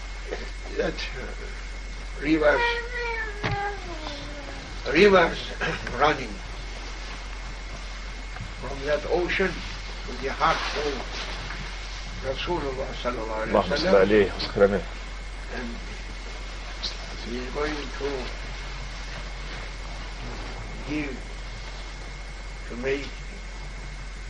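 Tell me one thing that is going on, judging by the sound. An elderly man speaks slowly and calmly nearby, with pauses.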